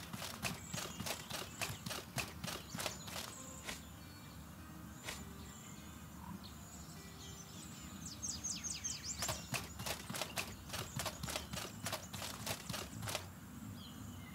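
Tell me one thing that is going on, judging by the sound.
Footsteps clatter on hard stone.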